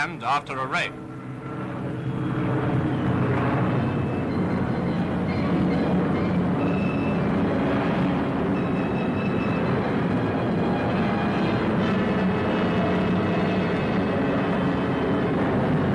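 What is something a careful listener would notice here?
An aircraft engine drones steadily and loudly.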